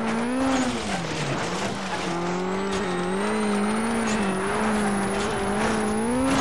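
A rally car engine roars and shifts pitch as it changes gears.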